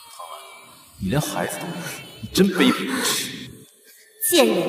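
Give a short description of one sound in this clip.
A young man speaks with contempt.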